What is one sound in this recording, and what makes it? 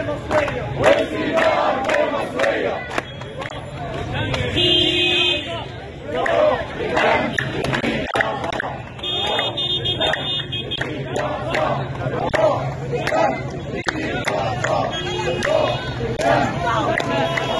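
A crowd of men chants loudly in rhythm outdoors.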